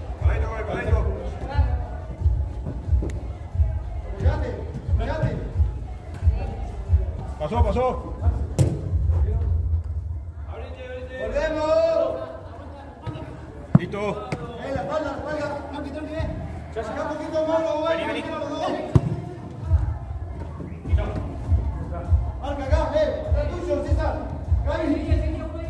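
Sneakers thump and scuff on artificial turf.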